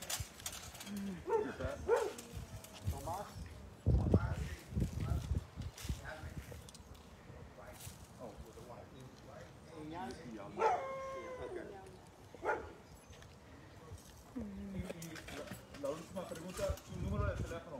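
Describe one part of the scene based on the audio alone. A dog barks loudly nearby.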